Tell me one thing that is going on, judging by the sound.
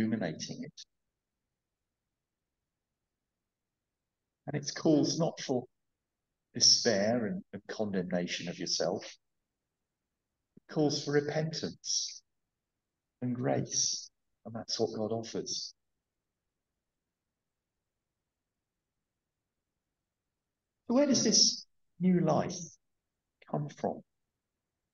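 A middle-aged man speaks slowly and deliberately into a headset microphone, with long pauses.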